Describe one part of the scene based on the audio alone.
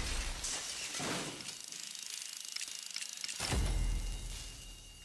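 A heavy blast booms and rumbles.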